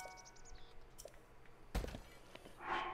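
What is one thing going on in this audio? A game chest creaks open with a chime.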